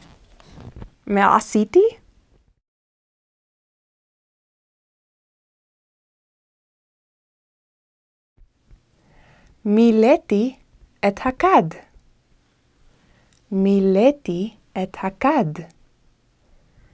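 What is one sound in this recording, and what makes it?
A young woman speaks brightly, close to the microphone.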